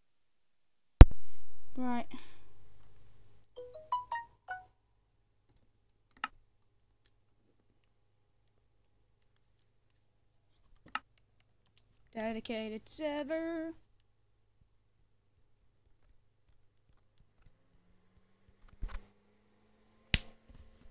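A game menu gives short clicks as options are picked.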